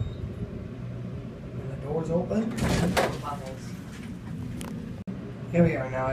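Elevator doors slide open and shut.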